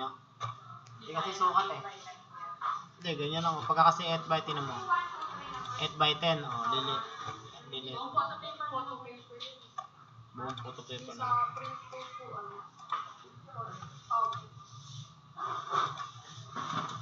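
A young man talks casually, close by through a computer microphone.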